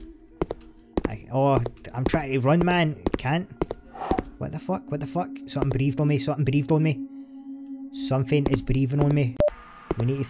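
A man speaks with animation into a microphone close by.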